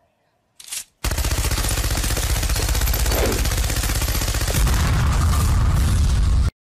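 A machine gun fires a rapid, loud burst.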